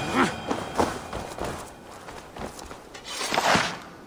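A wild boar squeals and grunts.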